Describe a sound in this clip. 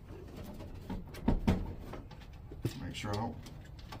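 A plastic panel clicks and snaps into place.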